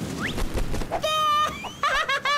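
A cartoon chick squawks in a high, squeaky voice.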